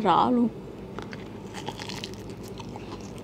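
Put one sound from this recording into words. A young woman bites into a crisp peach with a crunch.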